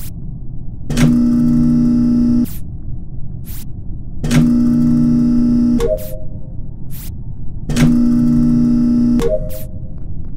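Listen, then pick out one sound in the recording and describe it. A loud mechanical rumble roars in three short bursts.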